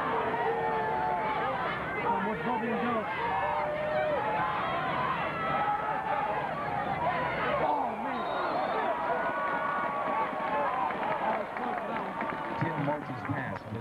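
A large outdoor crowd cheers and shouts.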